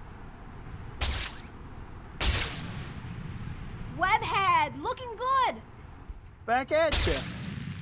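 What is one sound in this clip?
A video game character swings through the air with a sharp whoosh.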